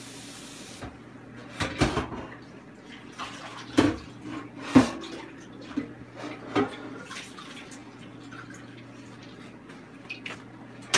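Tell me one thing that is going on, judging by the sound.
Dishes and utensils clatter and knock.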